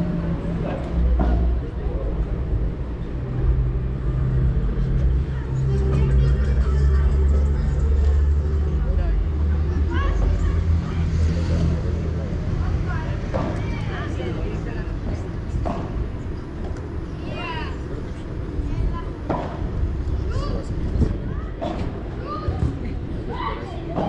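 Padel rackets strike a ball with sharp pops.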